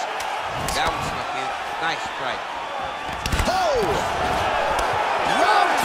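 Punches thud against a body.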